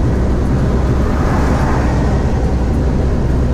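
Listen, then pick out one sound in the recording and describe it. A car passes close by with a brief whoosh.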